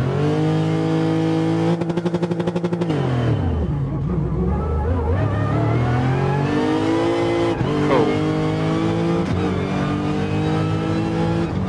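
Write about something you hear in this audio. A V8 race car engine revs hard and shifts through the gears.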